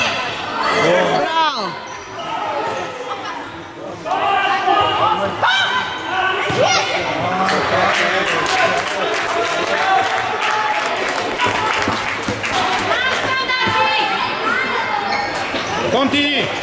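Young boys shout to each other in a large echoing hall.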